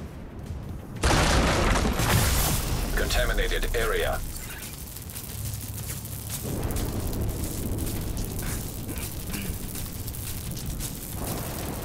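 Electricity crackles and buzzes in sharp bursts.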